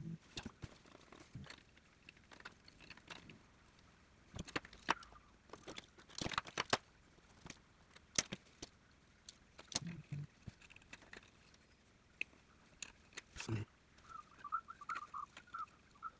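Plastic pieces snap into place on a toy car.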